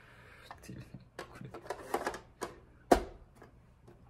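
A plastic game cartridge scrapes and clicks as it is pushed into a console.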